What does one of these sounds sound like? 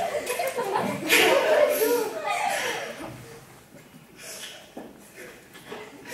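A young girl giggles close to a microphone.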